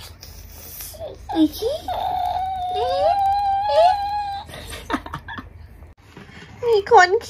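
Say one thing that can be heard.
A baby coos and squeals loudly close by.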